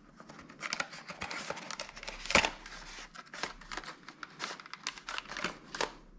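Hard plastic clicks and taps as a part is handled.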